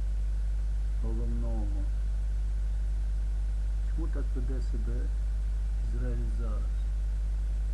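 An elderly man speaks slowly and calmly in short phrases, close to a microphone.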